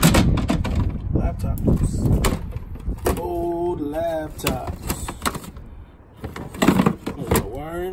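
Heavy items and cables knock and rattle inside a plastic crate.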